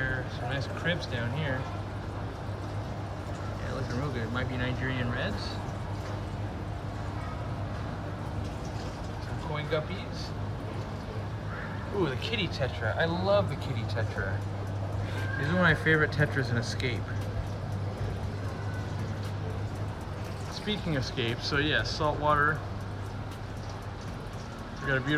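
Aquarium pumps hum steadily.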